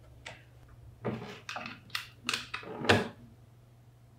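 A power cord rattles and drags across a wooden surface.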